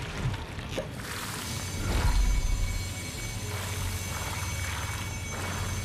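Electricity crackles and hisses in a loud, sudden burst.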